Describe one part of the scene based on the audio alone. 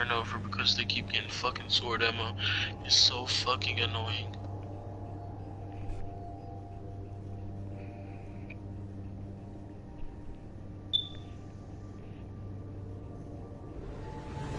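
Spaceship engines hum steadily.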